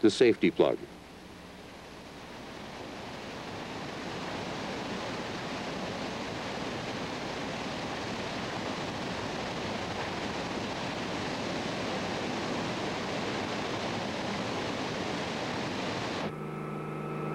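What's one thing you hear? Floodwater roars steadily as it pours over a broken embankment.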